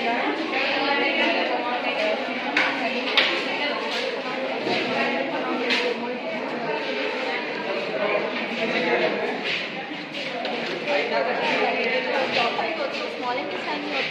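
A young woman explains calmly, close by.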